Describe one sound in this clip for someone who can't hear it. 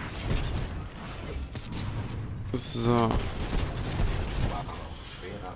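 Heavy guns fire in rapid bursts with deep booms.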